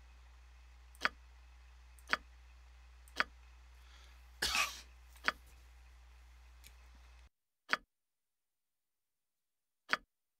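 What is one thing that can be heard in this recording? Short interface clicks sound at a regular pace.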